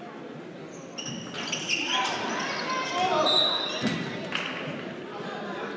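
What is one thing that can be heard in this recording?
Spectators cheer and shout.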